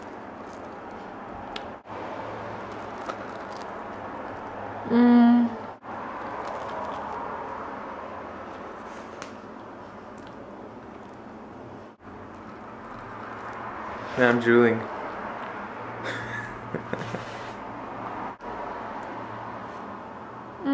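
A young woman chews and smacks her lips close by.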